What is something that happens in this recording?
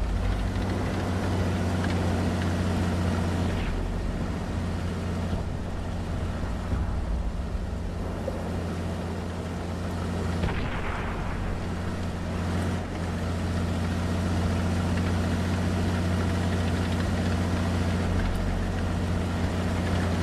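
A tank engine rumbles steadily as the tank drives over the ground.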